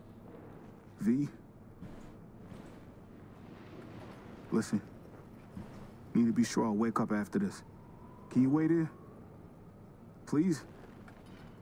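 A young man speaks nervously, close by.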